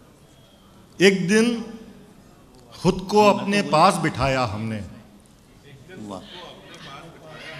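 An elderly man recites expressively through a microphone in a large hall.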